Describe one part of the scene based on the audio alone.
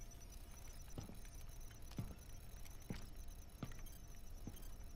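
Heavy boots step slowly across a hard metal floor.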